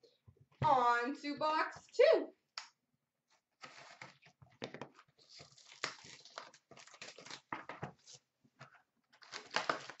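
A cardboard box scrapes and taps as it is handled.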